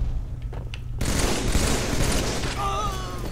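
Gunfire crackles in a quick burst.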